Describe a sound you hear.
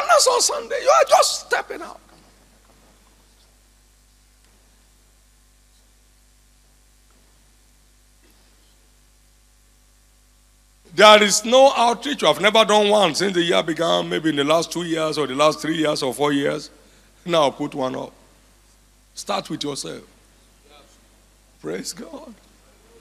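A man speaks with fervour through a microphone and loudspeakers in a large echoing hall.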